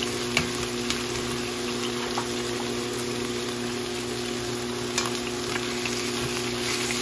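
Chicken pieces sizzle steadily in a hot pan.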